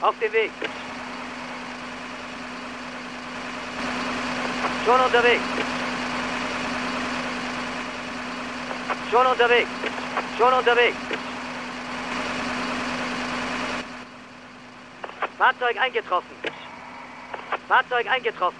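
A fire engine siren wails in short bursts.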